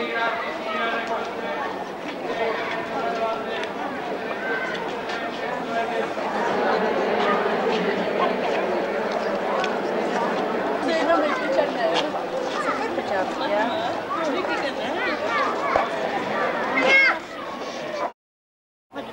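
A large crowd of people sings together nearby.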